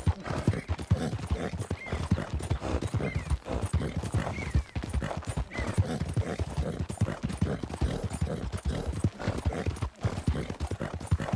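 Horse hooves pound quickly on a dirt trail.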